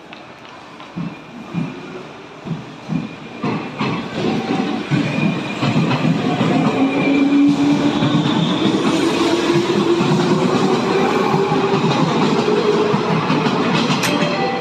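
A train starts to pull away with heavy clunks and grows louder.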